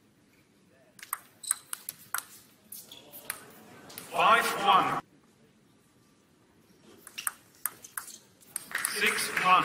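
A table tennis ball clicks quickly back and forth off paddles and the table.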